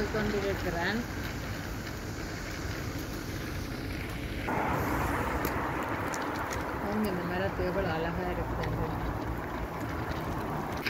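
Road traffic rumbles steadily nearby.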